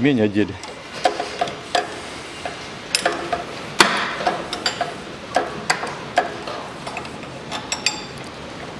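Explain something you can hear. Plastic parts click and knock under a gloved hand.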